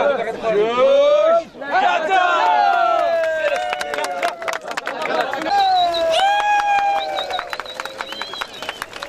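A crowd of men cheers and shouts loudly outdoors.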